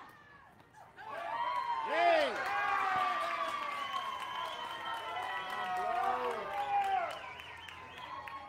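Young players shout and cheer excitedly outdoors.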